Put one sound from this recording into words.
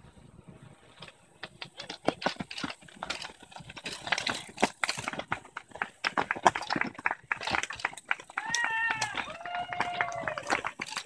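Cycling shoes crunch and scuff on dry dirt as riders run uphill.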